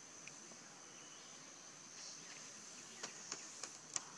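A young macaque patters over stone and dry leaves.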